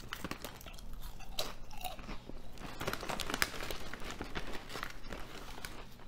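A crisp packet crinkles.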